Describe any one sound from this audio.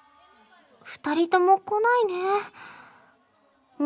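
A young woman speaks in a bright, animated voice.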